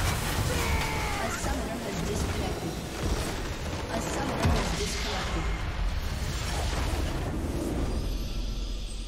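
Fantasy battle effects clash, zap and crackle loudly.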